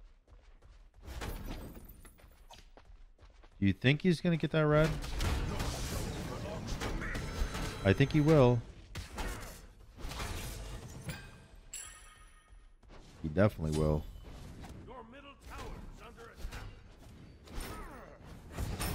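Game combat effects clash and whoosh.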